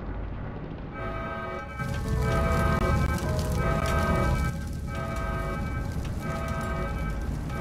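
An alarm blares with a steady repeating tone.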